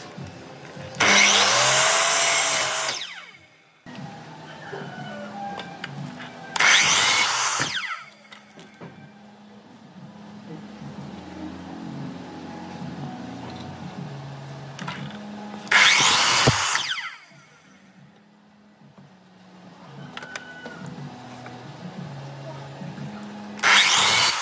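A miter saw whines loudly as it cuts through wood.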